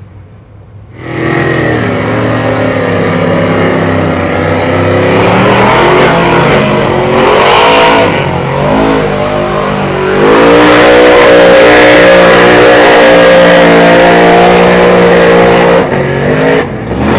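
A big truck engine roars loudly, revving up and down.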